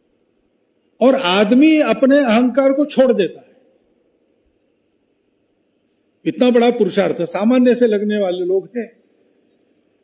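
An elderly man speaks forcefully into a microphone, heard through loudspeakers.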